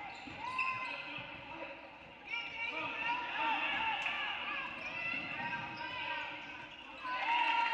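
A basketball bounces on the floor as players dribble.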